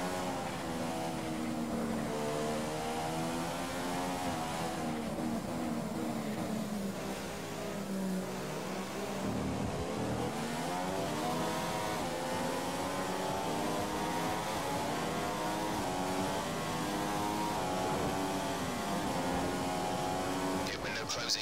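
A racing car engine whines at high revs, rising and dropping in pitch as the gears shift.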